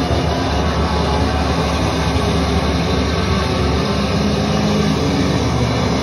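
An electric guitar plays loudly through amplifiers at a live concert.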